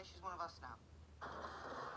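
A young man speaks with animation.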